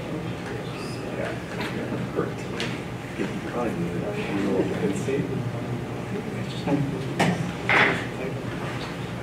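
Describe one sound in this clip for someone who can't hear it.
An elderly man speaks calmly at a distance in a large room.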